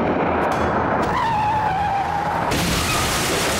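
Tyres screech as a car skids on the road.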